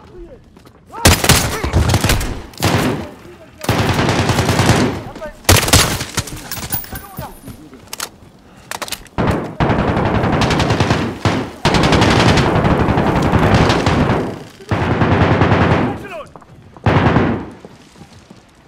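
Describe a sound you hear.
Loud rifle shots fire in bursts.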